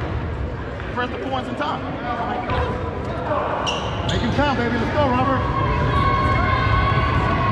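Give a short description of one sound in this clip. Sneakers squeak on a hardwood court in a large echoing gym.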